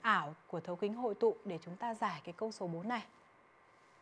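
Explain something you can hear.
A young woman speaks clearly and calmly into a microphone.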